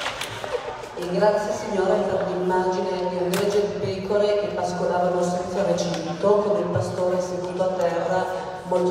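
A group of men and women sing together in a large echoing hall.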